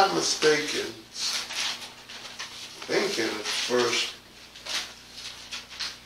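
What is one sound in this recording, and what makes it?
A man speaks calmly into a microphone, reading out.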